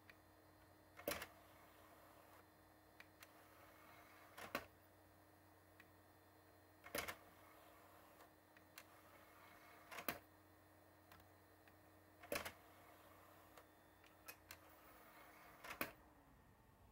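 A disc tray slides out and back in with clunks.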